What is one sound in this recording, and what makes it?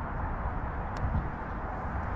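A golf club taps a ball.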